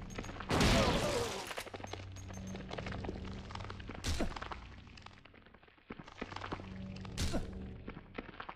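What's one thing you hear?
Heavy blows thud, again and again.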